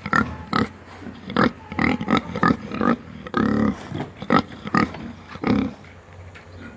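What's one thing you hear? A pig grunts close by.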